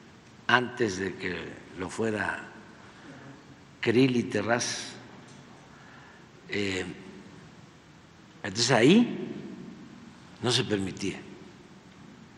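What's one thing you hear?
An elderly man speaks calmly into a microphone in short bursts with pauses.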